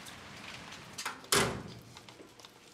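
A metal gate clanks as it swings shut.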